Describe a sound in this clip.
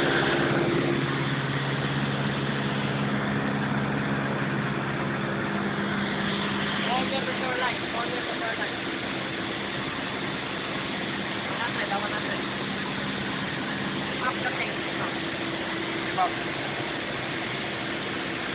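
A small plane's engine drones steadily with a loud rushing hum.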